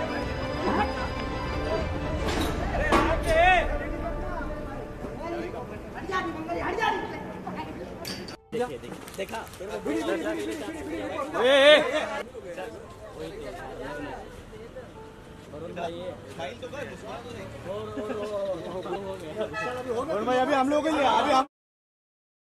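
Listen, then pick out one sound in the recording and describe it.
A crowd of young men talk and call out close by.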